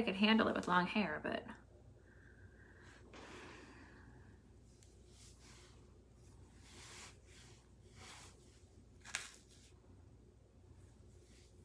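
Hair rustles under a woman's hands.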